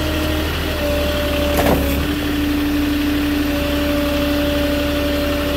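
A forklift's hydraulics whine as the forks lift a load.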